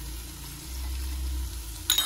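Liquid pours into a pot.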